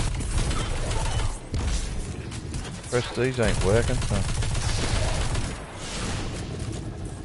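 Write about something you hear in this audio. Energy guns fire in rapid bursts with loud zapping blasts.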